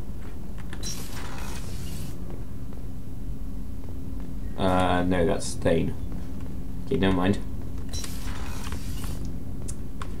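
A sliding door hisses open.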